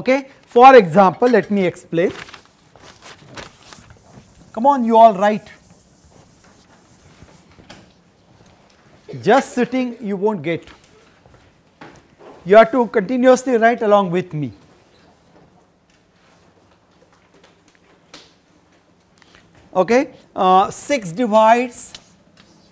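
An elderly man lectures calmly in short bursts with pauses.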